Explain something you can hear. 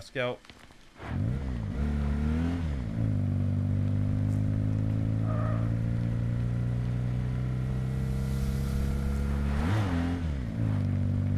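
A tank engine rumbles steadily and revs up and down as it drives.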